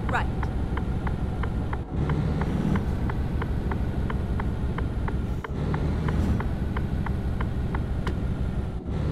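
A turn signal ticks quickly and evenly.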